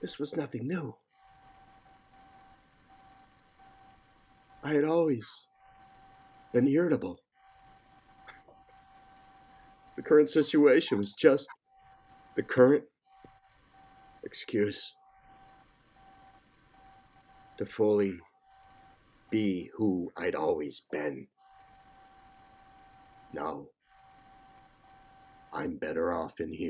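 A man speaks slowly and emotionally over an online call, in short phrases with pauses.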